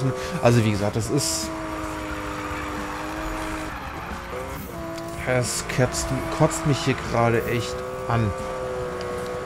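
Tyres screech as a car drifts on a wet road.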